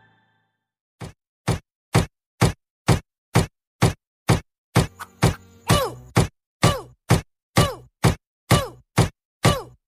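Electronic music plays with a steady, punchy thumping beat.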